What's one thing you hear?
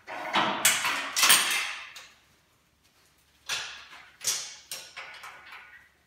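A metal chain clanks and rattles against steel.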